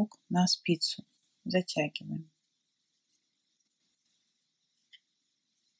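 A metal knitting needle clicks faintly against yarn.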